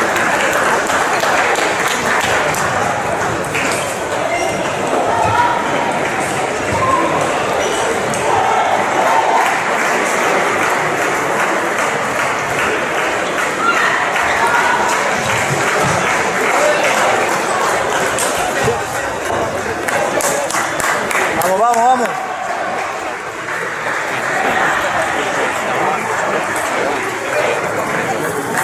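A large indoor hall echoes with a murmur of crowd voices.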